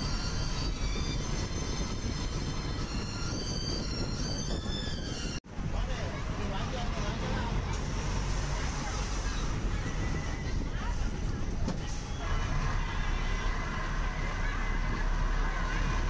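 Wind rushes past an open bus window.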